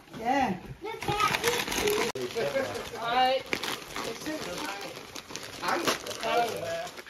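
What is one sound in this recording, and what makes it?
A young child talks excitedly nearby.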